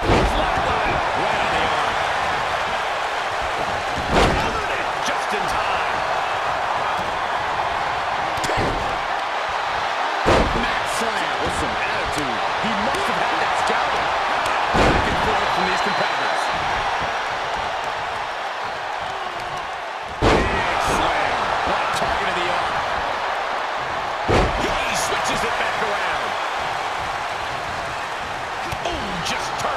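A large crowd cheers and roars steadily throughout.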